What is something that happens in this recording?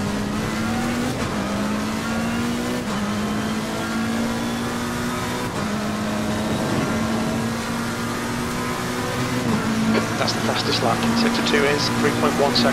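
A race car engine roars loudly, climbing in pitch and dropping briefly at each gear change.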